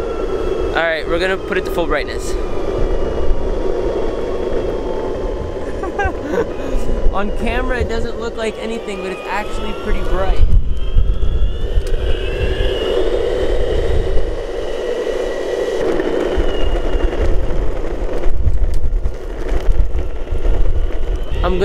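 Skateboard wheels roll and rumble steadily on pavement.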